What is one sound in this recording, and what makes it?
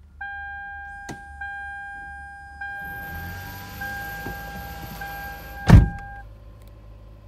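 A car's warning chime beeps repeatedly and steadily.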